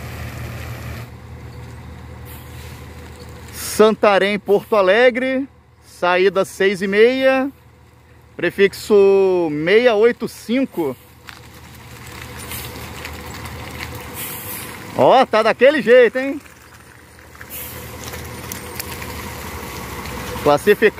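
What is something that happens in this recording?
A bus engine rumbles as the bus creeps forward.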